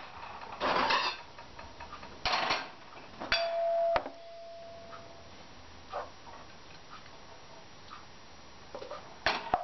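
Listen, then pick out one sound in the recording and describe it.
A metal pan clanks and scrapes as it is handled.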